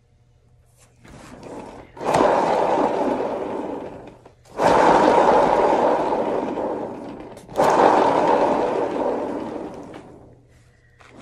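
A heat gun blows air in loud, whooshing bursts.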